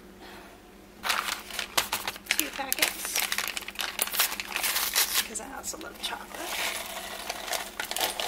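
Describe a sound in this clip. A paper packet crinkles and tears open close by.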